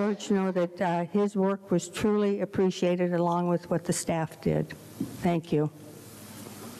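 An elderly woman speaks calmly into a microphone in a room.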